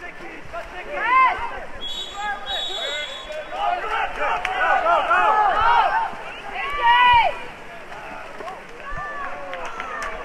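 Players splash and thrash in the water.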